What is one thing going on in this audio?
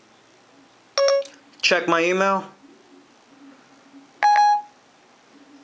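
A phone gives short electronic chimes.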